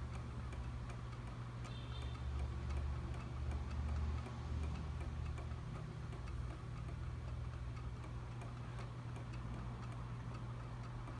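Small toy motors tick softly and steadily as the toys rock.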